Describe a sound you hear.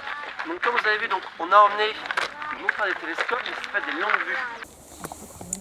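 A man speaks calmly outdoors to a group.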